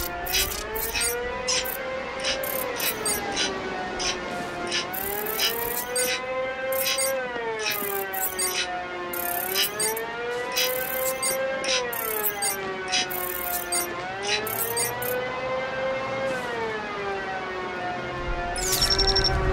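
An electronic scanner hums with a tone that slowly rises and falls.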